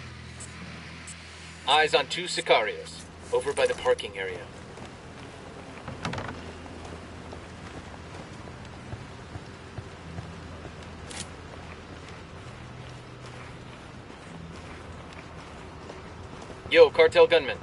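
Footsteps scuff slowly over rough ground.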